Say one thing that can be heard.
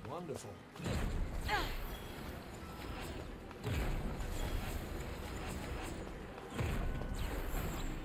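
Flames roar up in a sudden burst.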